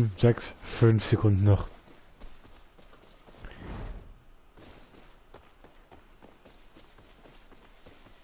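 Footsteps crunch softly over dry grass.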